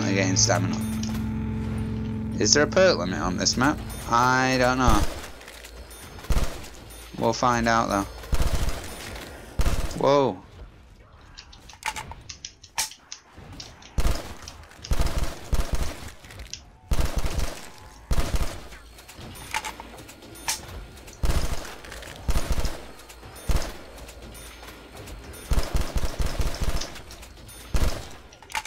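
Rapid bursts of automatic gunfire crack close by.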